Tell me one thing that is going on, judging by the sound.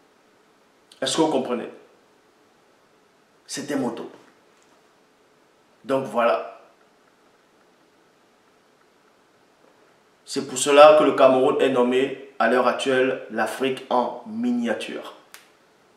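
A man speaks calmly and close up, in short bursts with pauses.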